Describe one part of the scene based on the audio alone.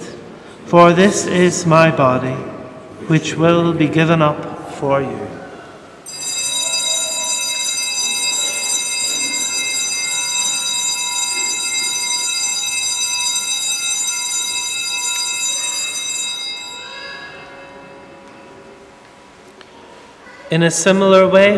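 A man chants through a microphone in a large echoing hall.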